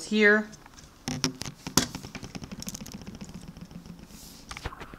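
Small plastic toy parts click and rattle as fingers handle them.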